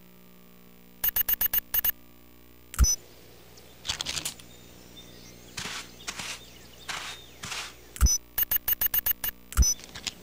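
Short electronic menu blips click in quick bursts.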